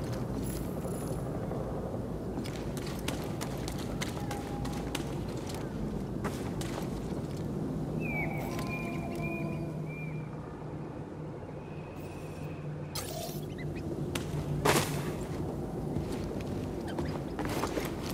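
Footsteps crunch on dirt and creak on wooden planks.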